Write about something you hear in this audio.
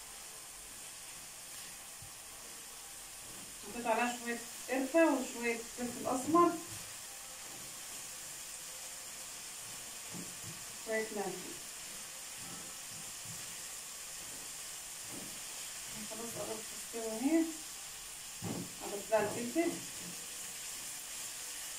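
A spatula stirs and scrapes food in a frying pan.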